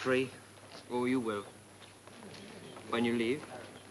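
A match strikes and flares.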